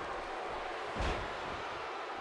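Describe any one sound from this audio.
A heavy body thuds onto a wrestling ring mat.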